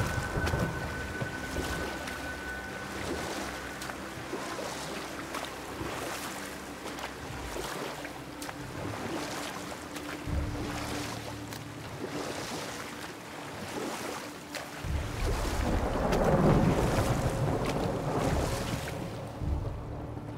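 Oars splash and paddle steadily through water.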